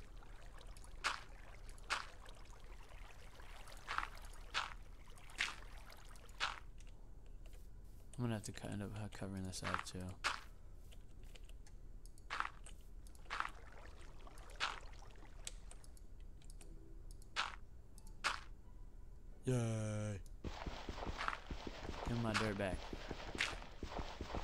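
Dirt blocks are placed with short, soft thuds again and again.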